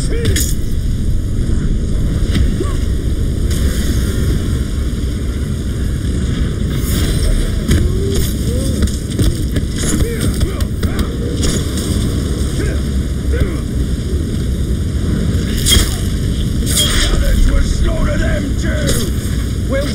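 Creatures grunt and shriek as they are struck.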